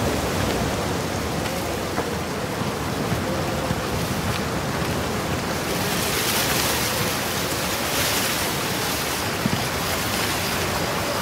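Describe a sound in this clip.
Wind rustles through tree leaves outdoors.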